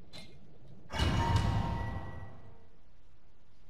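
A game menu plays a swooshing transition sound.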